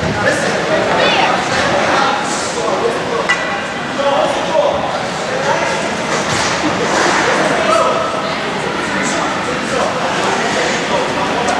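A man talks loudly and with animation nearby, in a large echoing rink.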